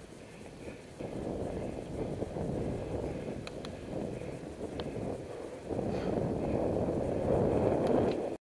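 Wind rushes past, louder toward the end.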